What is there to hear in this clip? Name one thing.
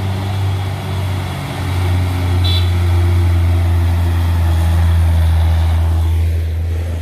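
A heavy truck's diesel engine rumbles loudly as the truck drives past close by.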